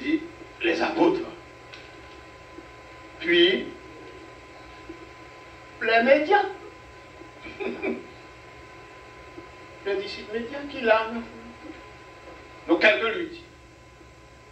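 An elderly man speaks slowly into a microphone in short phrases, with pauses between them.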